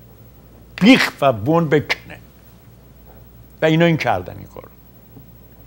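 An elderly man speaks with animation into a close microphone, in short bursts.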